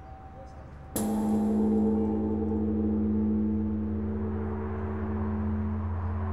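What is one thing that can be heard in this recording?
A large temple bell is struck once and rings on with a deep, slowly fading hum.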